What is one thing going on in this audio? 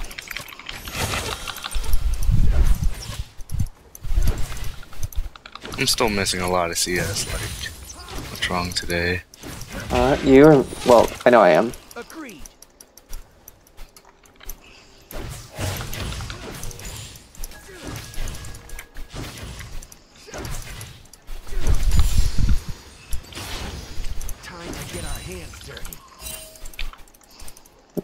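Spells whoosh and crackle with sharp magical blasts during a fight.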